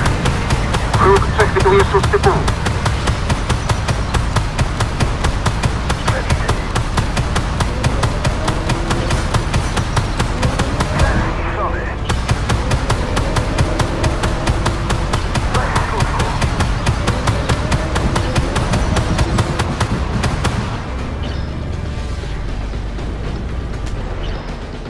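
A heavy engine rumbles low and steadily.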